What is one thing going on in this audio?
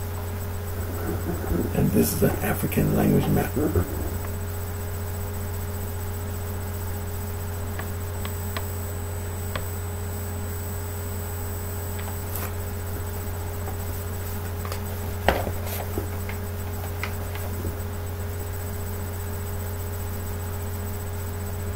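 A sheet of paper rustles in a hand.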